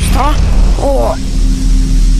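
A laser beam fires with a high, sizzling hum.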